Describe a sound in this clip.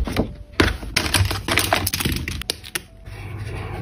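A plastic case rattles and clicks as pens are handled.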